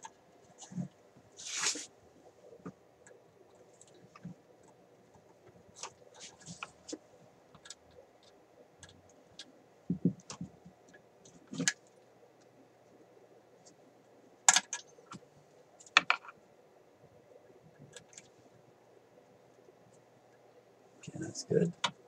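Metal test probes click and tap against parts of a chassis.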